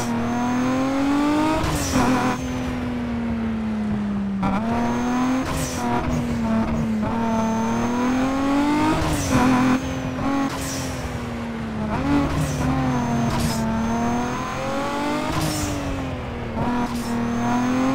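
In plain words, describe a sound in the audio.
A car engine revs high and rises and falls through quick gear changes.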